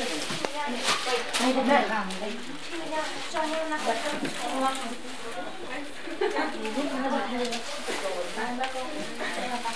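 Several women talk and chatter nearby.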